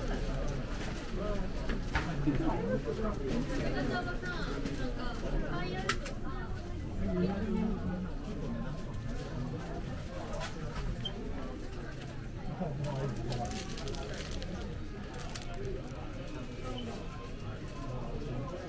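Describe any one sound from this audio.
A crowd of people murmurs and chatters nearby indoors.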